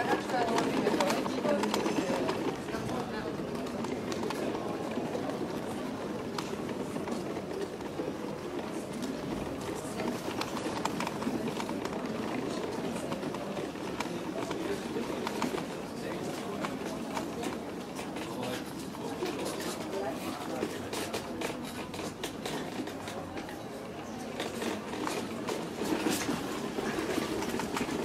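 Footsteps scuff on cobblestones outdoors.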